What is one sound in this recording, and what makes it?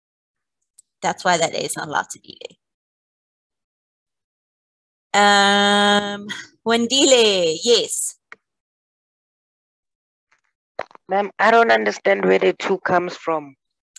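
A woman speaks with animation through a microphone in an online call.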